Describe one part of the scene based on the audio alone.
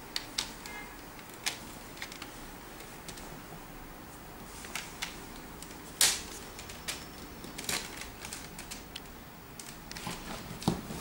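Plastic toy bricks click and clatter as they are pressed and handled.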